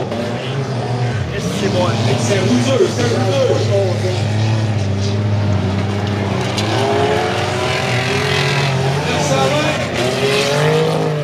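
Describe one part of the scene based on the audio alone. Race car engines roar and rev throughout.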